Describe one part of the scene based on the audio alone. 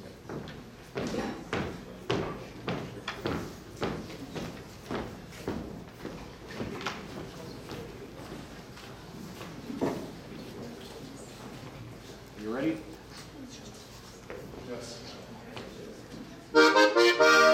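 Dancers slap their thighs and shoes in a quick rhythm.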